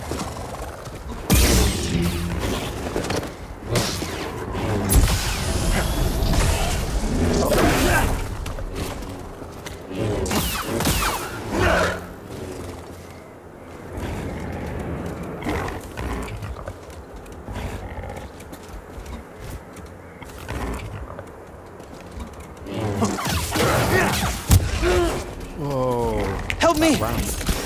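A lightsaber hums and swooshes through the air in fast swings.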